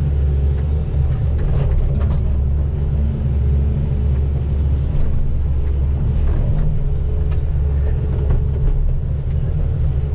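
An excavator bucket scrapes and digs into soil.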